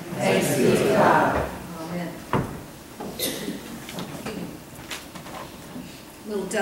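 A woman speaks calmly into a microphone in a reverberant room.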